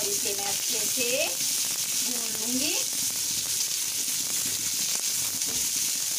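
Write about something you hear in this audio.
Vegetables sizzle steadily in a hot pan.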